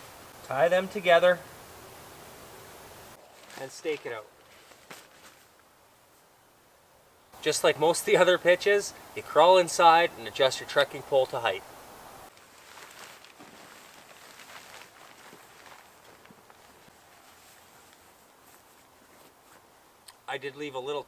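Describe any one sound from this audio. A man talks calmly to the listener, close by.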